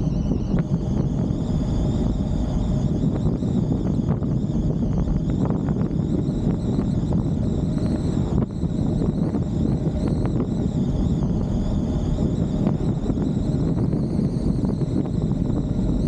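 Wind rushes and rumbles loudly past the moving car.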